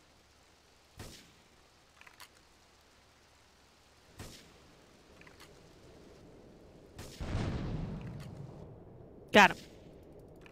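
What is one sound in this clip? A sniper rifle fires sharp single shots.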